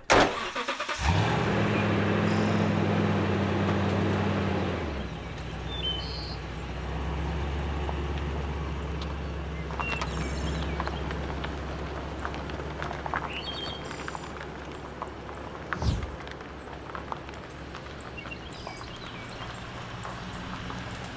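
A pickup truck engine runs with a steady low hum.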